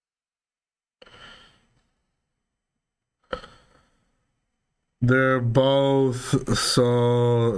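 A man reads out quietly, close by.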